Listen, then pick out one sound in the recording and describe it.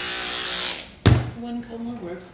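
Electric hair clippers are set down with a knock on a hard surface.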